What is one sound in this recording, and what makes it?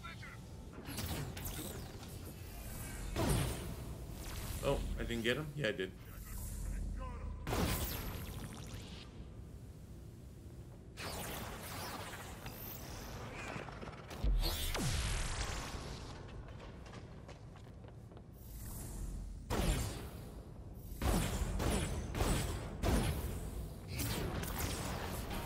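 Energy blasts crackle and whoosh in bursts.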